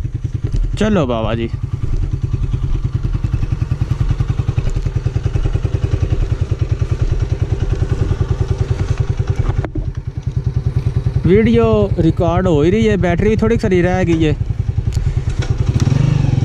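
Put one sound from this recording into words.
A motorcycle engine idles close by with a steady, fast putter.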